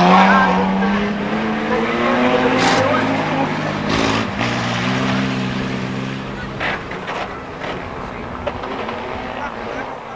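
Car engines roar and rev close by.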